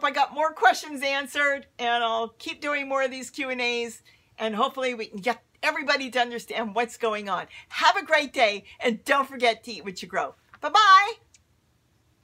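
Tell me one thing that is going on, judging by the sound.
A woman talks cheerfully and animatedly close to a microphone.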